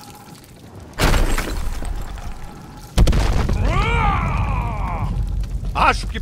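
A heavy stone pillar topples and crashes to the ground with a deep rumble.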